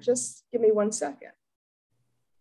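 A woman speaks briefly and calmly over an online call.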